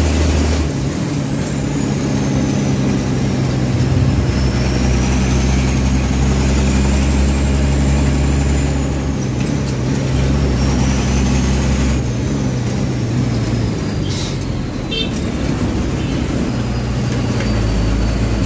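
A heavy diesel engine rumbles steadily from inside the vehicle.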